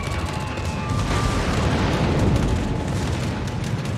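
A shell explodes with a loud boom.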